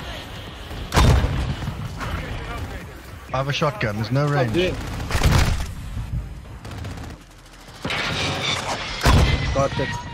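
Sharp rifle shots crack loudly, a few seconds apart.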